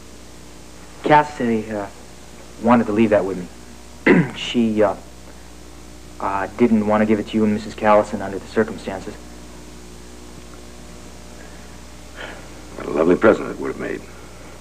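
A man speaks calmly close by, in short phrases with pauses.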